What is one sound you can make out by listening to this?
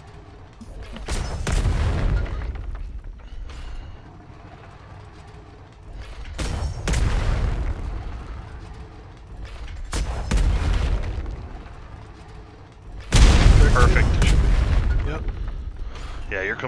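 Explosions boom heavily, again and again, with a rumbling tail.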